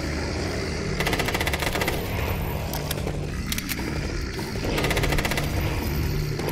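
A rapid burst of automatic gunfire rattles.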